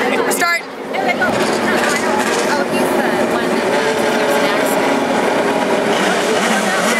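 Race cars roar around a track.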